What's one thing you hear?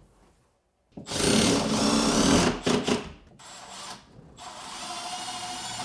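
A power drill whirs in short loud bursts.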